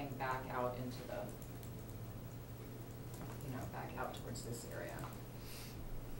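A woman speaks calmly, explaining.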